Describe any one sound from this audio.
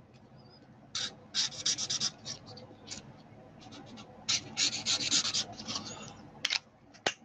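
A marker scratches and squeaks on paper.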